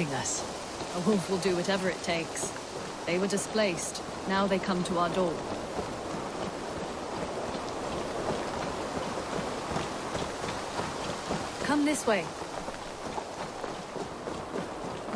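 A horse's hooves thud steadily on a dirt path.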